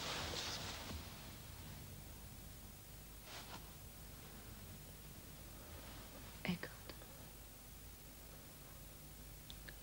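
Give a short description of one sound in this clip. A man whispers close by.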